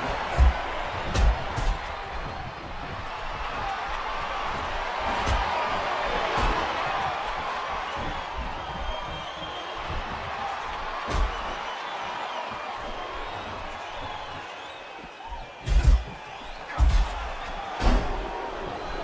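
Bodies slam heavily onto a wrestling mat with loud thuds.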